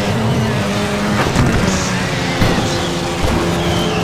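A car body knocks against a wall.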